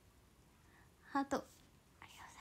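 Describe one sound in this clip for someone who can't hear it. A young woman speaks softly and cheerfully close to a microphone.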